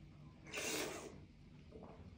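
A man slurps soup loudly from a spoon.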